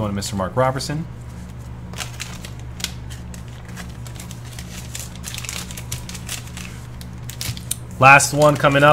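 A plastic wrapper crinkles and rustles in hands.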